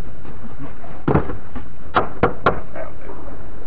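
Wooden planks knock and clatter against each other.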